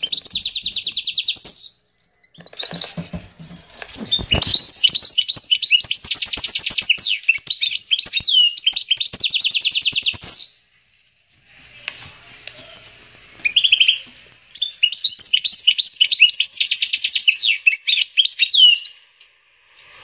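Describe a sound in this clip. A goldfinch and canary hybrid sings in long bursts of rapid trills and twittering.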